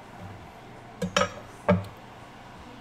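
A knife knocks against a wooden cutting board a few times.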